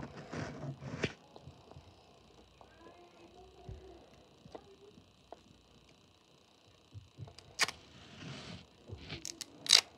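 A roll of tape taps and clicks as it is turned in the fingers.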